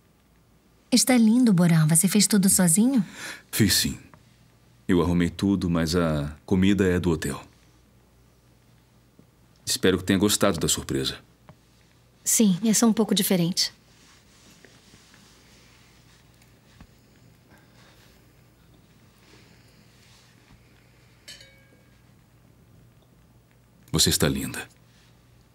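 A man speaks softly and close by.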